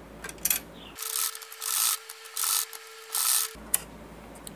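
A hand-cranked sewing machine whirs and clatters as it stitches.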